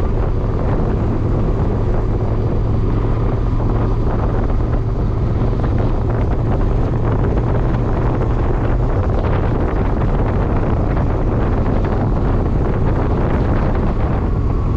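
A car engine hums steadily with road noise from inside a moving vehicle.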